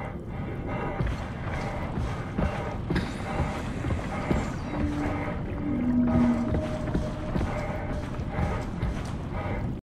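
Deep water rumbles and gurgles all around.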